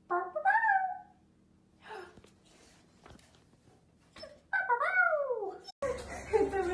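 A puppy howls in high, wavering cries.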